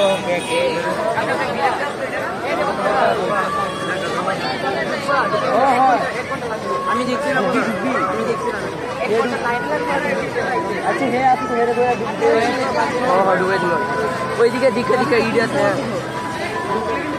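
A crowd of people chatters loudly all around outdoors.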